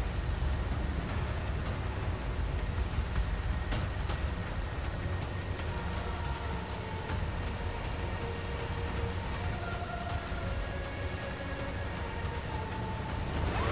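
A boat engine drones steadily and roars low.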